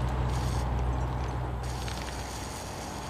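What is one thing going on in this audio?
A pickup truck engine rumbles as it drives.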